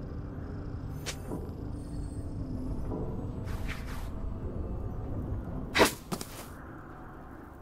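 Game spell effects whoosh and crackle in short bursts.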